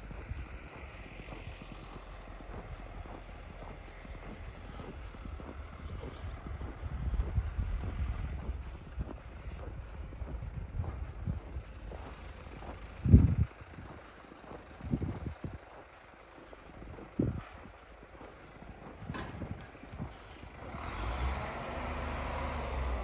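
Wind blows and rumbles outdoors.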